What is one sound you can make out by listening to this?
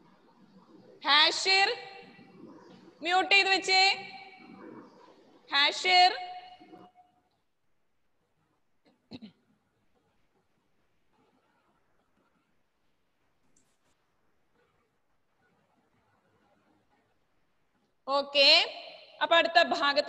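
A woman speaks clearly into a headset microphone, in short phrases with pauses.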